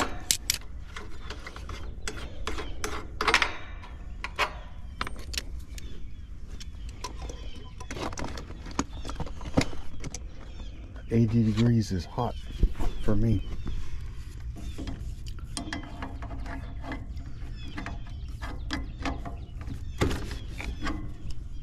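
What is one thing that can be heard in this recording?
A metal tool clicks and clinks against a metal fitting.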